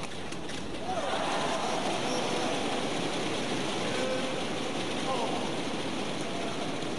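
A large crowd cheers and claps in an echoing hall.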